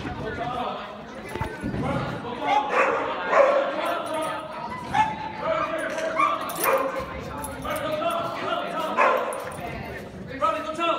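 A woman talks and calls out with excitement close by, in a large echoing hall.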